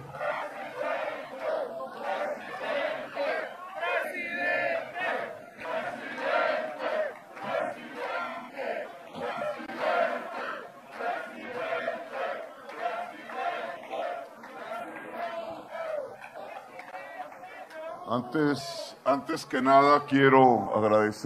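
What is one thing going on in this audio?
A man speaks with emphasis through a microphone and loudspeakers in a large echoing space.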